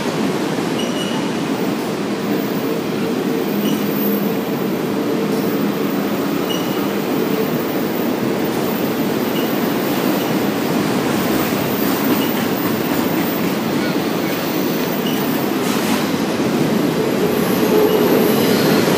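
A freight train rumbles past at close range.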